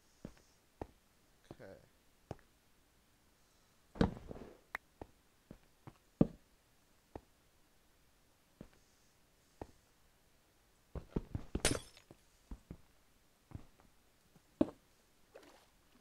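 Blocks knock and crack as they are dug and broken, in short bursts.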